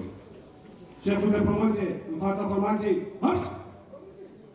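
A young woman speaks clearly through a microphone outdoors.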